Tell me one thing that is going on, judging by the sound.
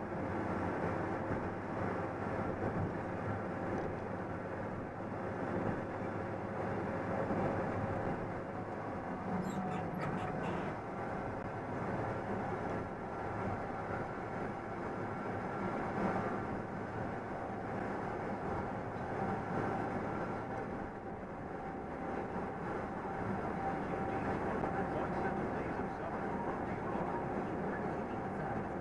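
A large truck's engine drones steadily.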